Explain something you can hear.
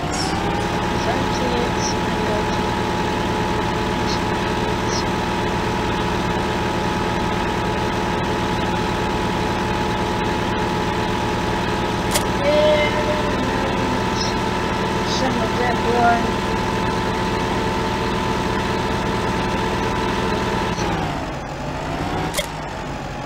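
A tractor engine hums steadily, then winds down near the end.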